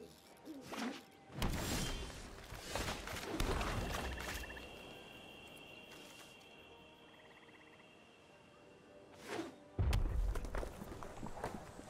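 Game cards land on a board with whooshing thuds.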